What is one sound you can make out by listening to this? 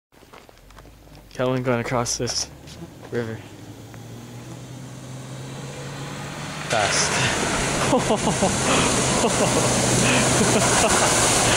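An off-road vehicle engine roars, growing louder as it approaches.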